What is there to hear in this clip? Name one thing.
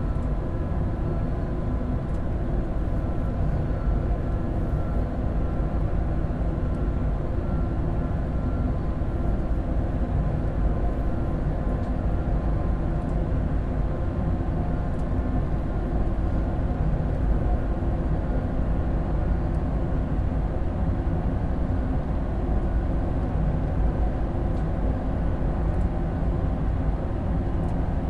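A high-speed electric train rumbles along the track at speed.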